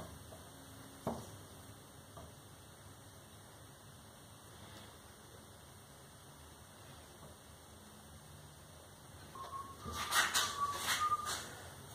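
Metal parts knock and clank against a metal frame.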